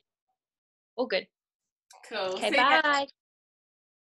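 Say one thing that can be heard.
A second young woman talks warmly over an online call.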